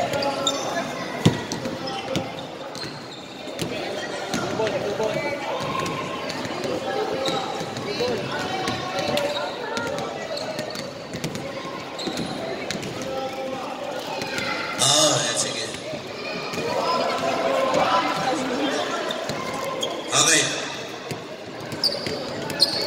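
People chatter and call out in a large echoing hall.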